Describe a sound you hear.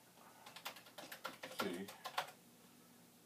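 Keys clatter on a computer keyboard.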